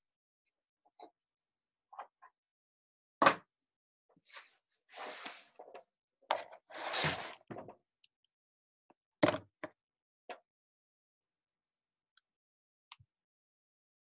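Soft rustles and bumps come from a person moving close by.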